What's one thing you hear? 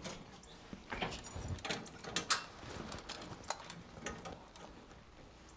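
A metal cabinet door rattles and clicks as someone opens it.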